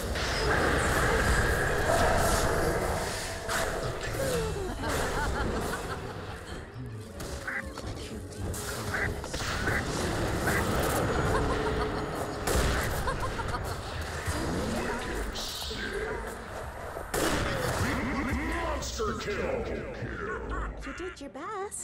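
Magic spells crackle and burst in a game battle.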